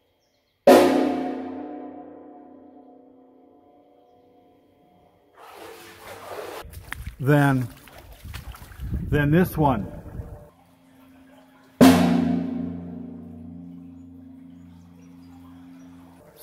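A struck metal object rings out loudly and slowly fades, echoing in a large hollow space.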